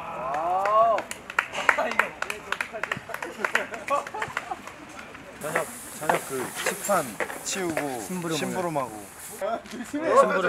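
Young men laugh and chatter nearby outdoors.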